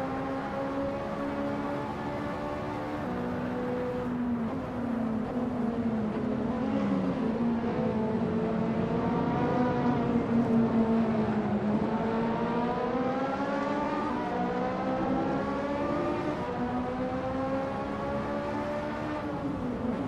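A racing car engine roars steadily, its pitch rising and falling as it shifts gears.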